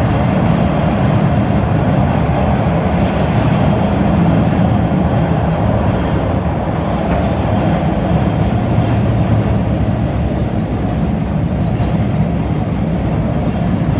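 A subway train rumbles loudly along the tracks.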